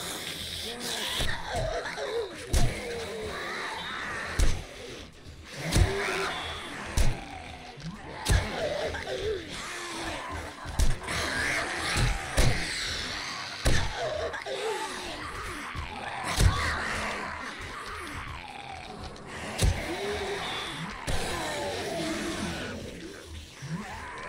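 Heavy blows thud again and again.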